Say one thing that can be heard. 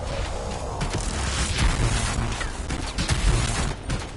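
Electric bolts crackle and zap loudly.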